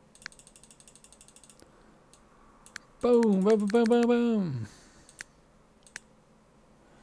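Short interface clicks sound as menu buttons are pressed.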